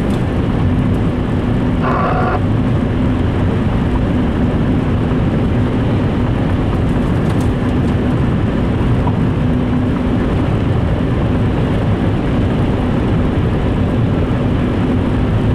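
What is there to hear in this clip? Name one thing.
Tyres roll on a wet road with a low rumble and hiss.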